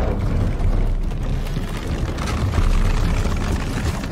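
Ropes creak under strain.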